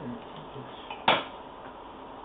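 A metal tool clicks against a hard surface.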